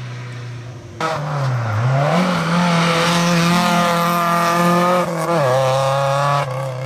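A third rally car engine roars past and fades.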